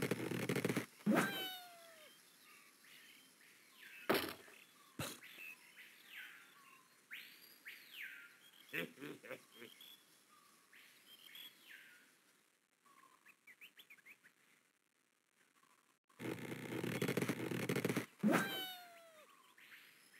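A cartoon bird squawks as it flies.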